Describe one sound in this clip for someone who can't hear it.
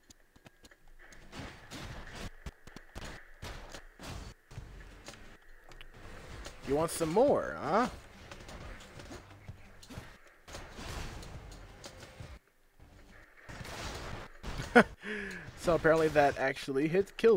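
Swords slash and hits thud in quick bursts of game combat.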